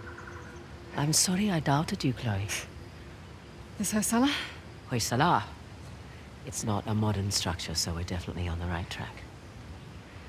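A woman speaks calmly up close.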